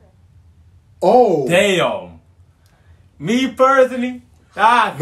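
A young man exclaims loudly and excitedly close by.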